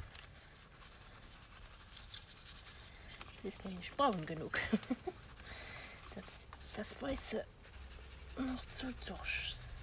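An ink pad taps and rubs softly against paper edges.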